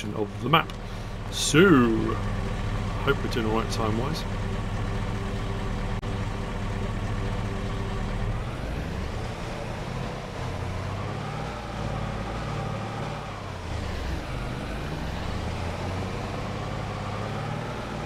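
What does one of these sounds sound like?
A vehicle engine hums and revs.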